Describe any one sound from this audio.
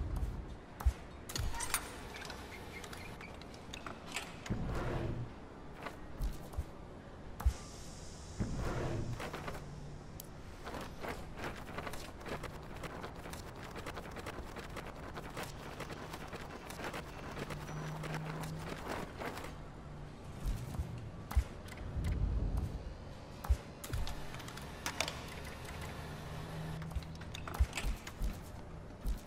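Short electronic clicks sound now and then.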